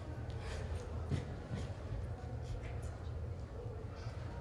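Clothing rustles softly as two people hug.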